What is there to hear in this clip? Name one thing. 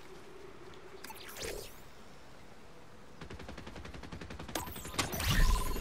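An electronic device whooshes and chimes as it switches on.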